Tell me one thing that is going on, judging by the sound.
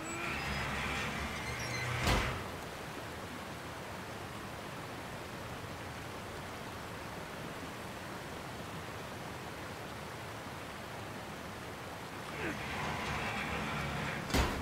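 Water rushes and churns steadily.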